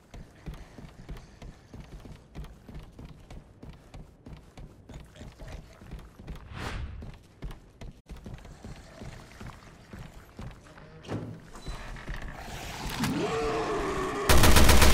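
Footsteps thud on creaking wooden boards.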